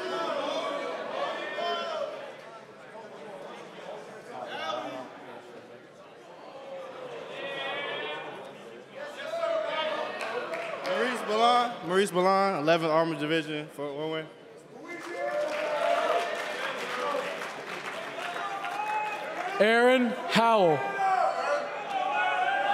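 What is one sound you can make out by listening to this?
A young man speaks with animation through a microphone in a large echoing hall.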